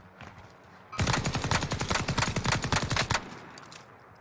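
A machine gun fires a long rapid burst.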